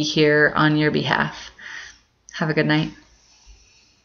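A woman speaks calmly and close to a microphone, with pauses.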